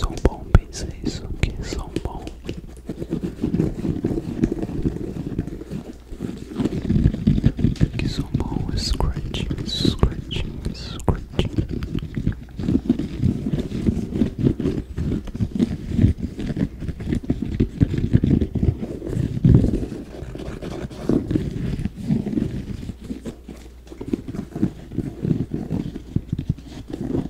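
Fingers tap and scratch on a sneaker up close.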